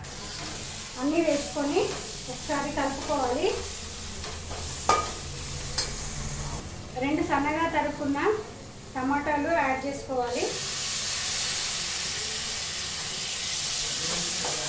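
A metal spoon scrapes and stirs food in a pan.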